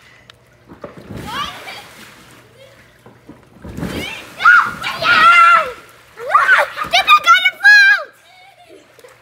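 Young girls shout and squeal excitedly close by.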